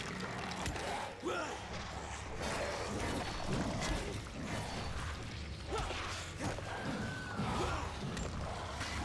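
A weapon strikes a monster with heavy thuds.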